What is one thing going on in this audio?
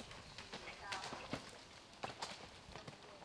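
A horse lands from a jump with a splash and thud.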